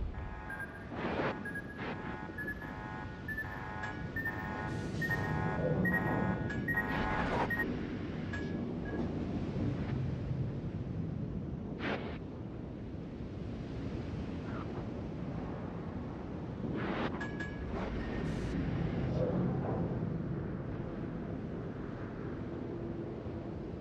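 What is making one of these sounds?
Water rushes and splashes along a ship's hull as the ship sails.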